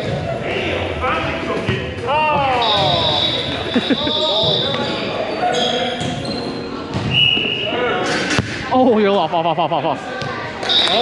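Young men call out and shout to each other across the court.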